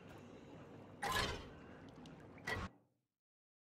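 Short interface whooshes and clicks sound.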